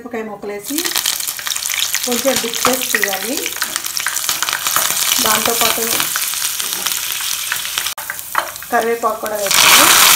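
Hot oil sizzles and crackles loudly.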